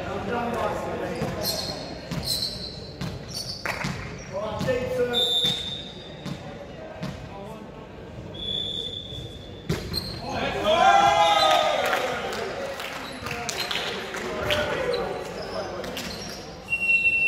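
Young men shout and call out in a large echoing gym.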